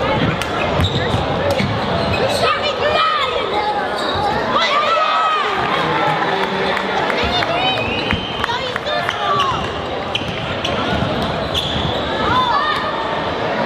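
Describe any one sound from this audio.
A basketball bounces with hollow thuds on the floor.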